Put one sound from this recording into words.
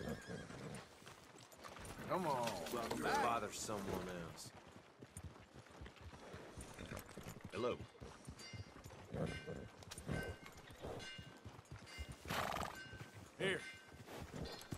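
A horse walks with hooves thudding on soft mud.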